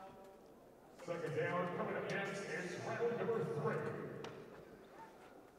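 A crowd cheers in a large hall.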